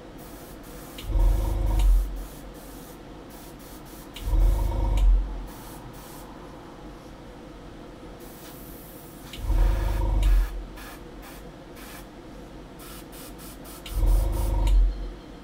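An airbrush hisses in short bursts, close by.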